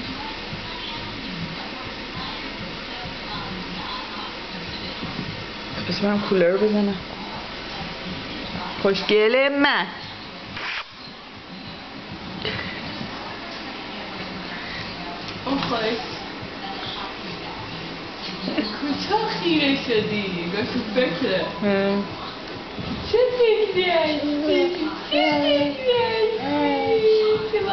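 A baby gnaws and sucks noisily on food.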